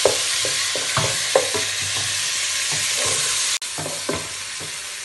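A wooden spatula scrapes and knocks against a pan.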